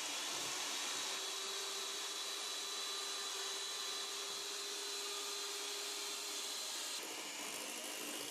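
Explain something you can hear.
An electric hand mixer whirs steadily, its beaters whisking in a metal bowl.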